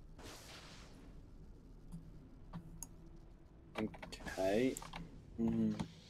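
Electricity crackles and sparks.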